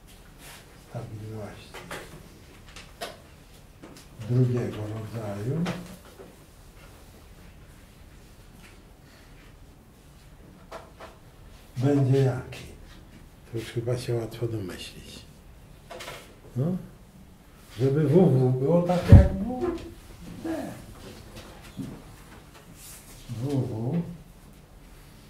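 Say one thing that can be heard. An elderly man speaks calmly in short bursts, close by, with pauses between.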